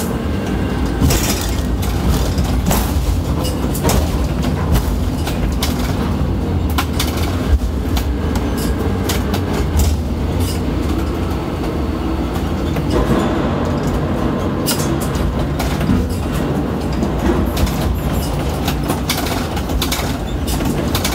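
A crane's machinery hums steadily as its lifting frame is lowered into a deep hold.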